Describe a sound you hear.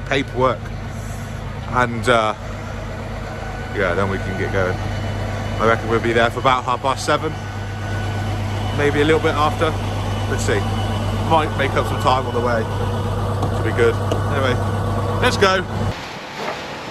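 An engine hums low and steady.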